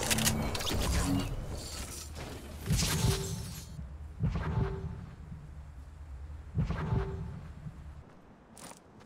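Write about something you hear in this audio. A game character's footsteps thud.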